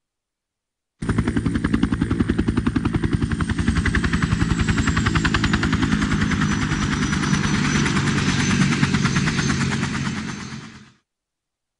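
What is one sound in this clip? A helicopter's rotor chops steadily overhead.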